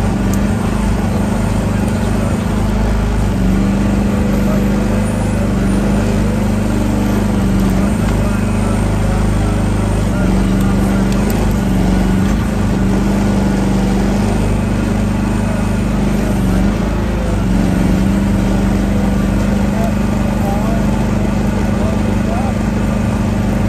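A small excavator's diesel engine drones steadily and loudly close by.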